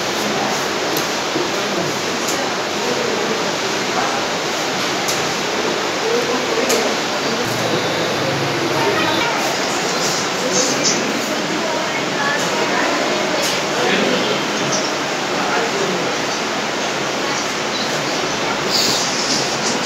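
Chess pieces tap softly on a board.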